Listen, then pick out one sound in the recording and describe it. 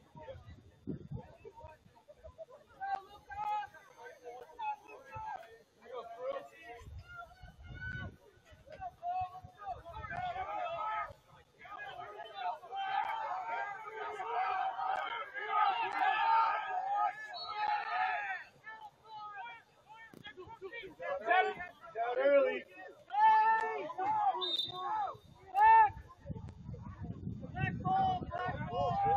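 Young players shout to one another across an outdoor field.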